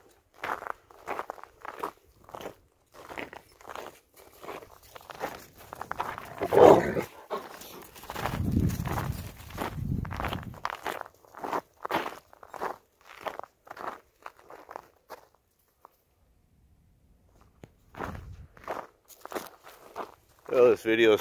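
Footsteps crunch through snow at a walking pace.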